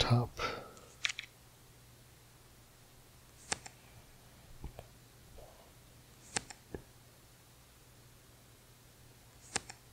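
Playing cards flip with short, sharp clicks from time to time.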